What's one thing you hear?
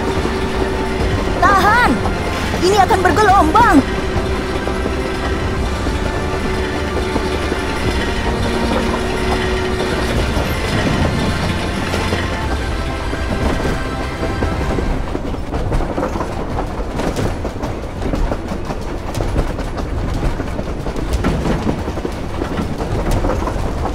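A fire truck engine rumbles steadily.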